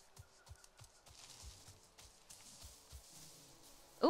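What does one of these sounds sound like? Footsteps tread steadily over soft ground.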